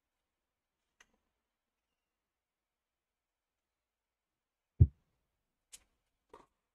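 A tennis ball is struck back and forth with rackets.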